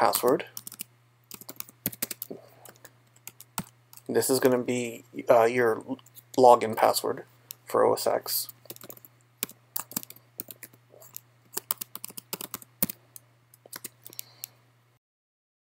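Keys click rapidly on a computer keyboard.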